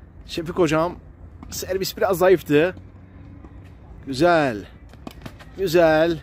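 A tennis ball is struck with a racket, heard from some distance outdoors.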